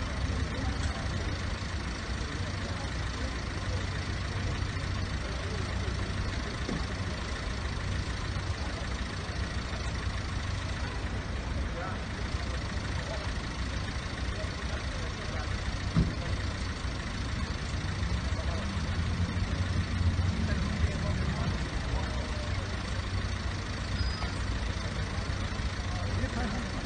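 A low outdoor rumble of wind and traffic goes on steadily.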